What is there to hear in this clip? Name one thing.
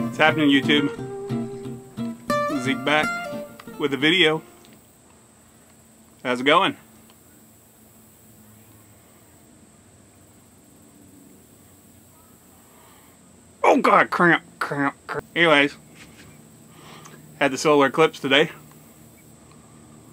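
A man puffs on a pipe.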